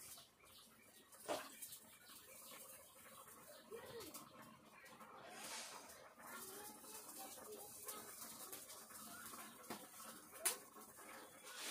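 Oil sizzles in a frying pan.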